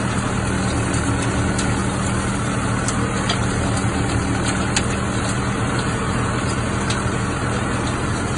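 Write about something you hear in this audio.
A baler machine rattles and clatters as it picks up straw.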